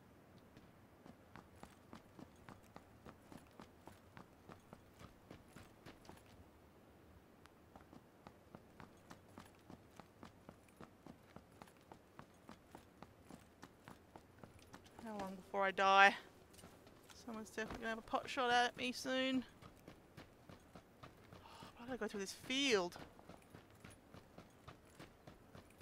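Footsteps run quickly and evenly on hard ground.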